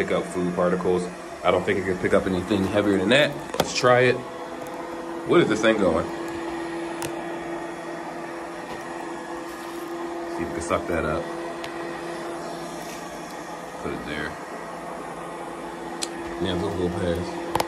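A robot vacuum hums steadily as it runs.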